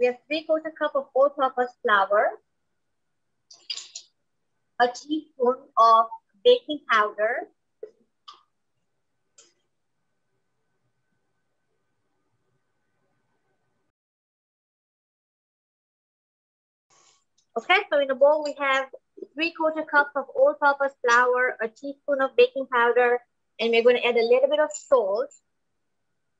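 A woman talks calmly and clearly, close to the microphone, pausing at times.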